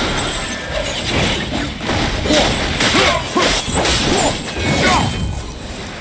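A blade slashes and strikes with heavy impacts.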